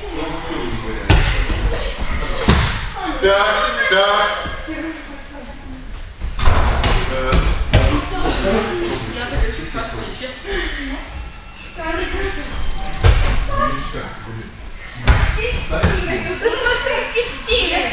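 Bodies thud onto a padded mat as children are thrown.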